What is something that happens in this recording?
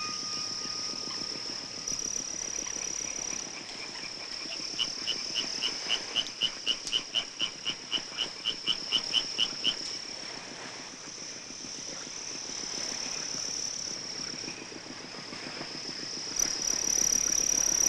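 Waves lap softly on open water.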